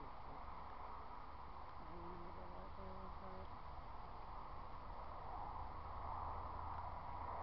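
Wind rustles through leaves and grass outdoors.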